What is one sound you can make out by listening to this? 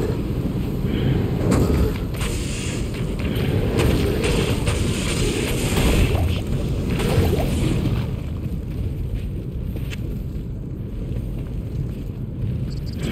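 Lava rumbles low and steadily.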